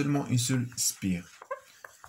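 A board eraser wipes across a whiteboard.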